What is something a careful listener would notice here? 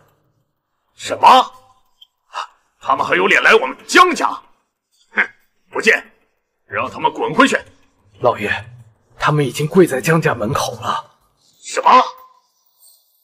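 An older man exclaims in surprise.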